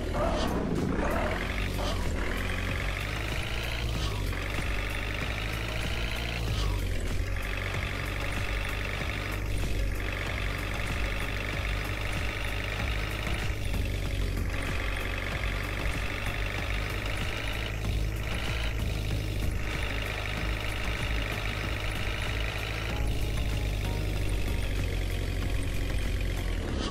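A truck engine drones steadily, rising and falling in pitch as it shifts gears.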